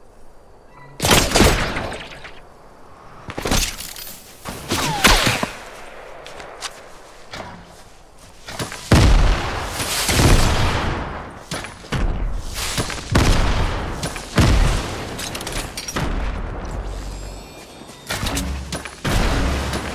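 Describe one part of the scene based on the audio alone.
Gunshots crack in loud, rapid bursts.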